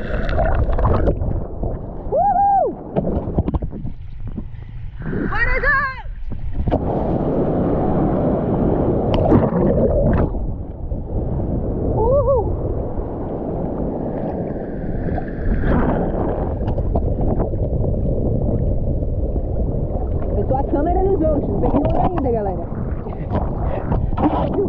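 Waves splash and slosh against a surfboard close by.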